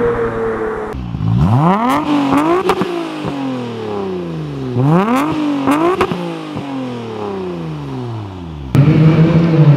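A car engine revs hard, rising and falling sharply in pitch.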